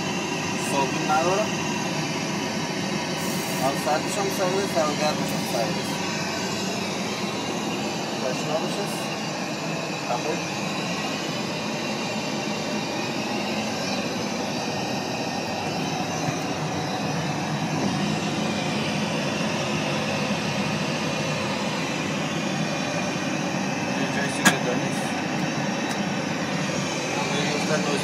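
A steady low roar of aircraft engines fills a small cabin.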